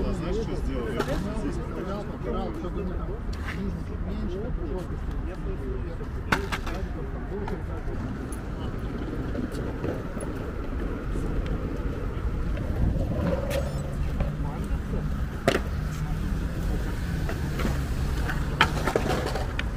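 Several men talk casually nearby, outdoors.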